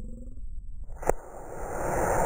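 A model rocket motor ignites with a sharp pop.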